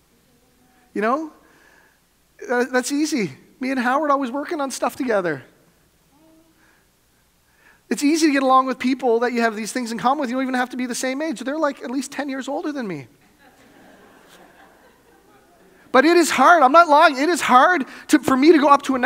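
A man preaches with animation through a microphone in a large echoing hall.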